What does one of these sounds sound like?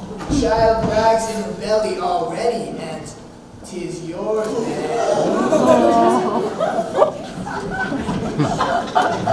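Young performers sing loudly on a stage in a large hall.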